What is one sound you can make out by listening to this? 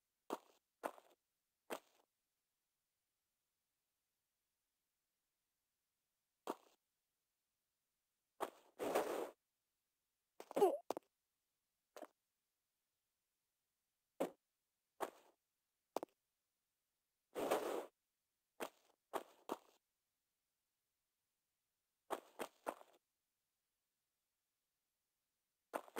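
Footsteps tap on stone floors.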